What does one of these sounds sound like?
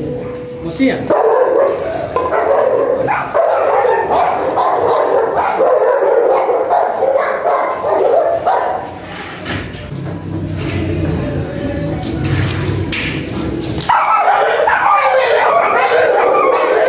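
Several dogs bark and yelp excitedly close by.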